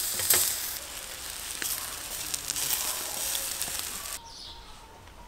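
Meat sizzles and crackles loudly over hot coals.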